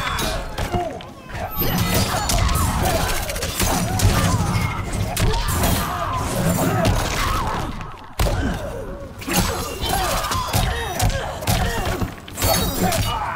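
Punches and kicks land with sharp, heavy thuds.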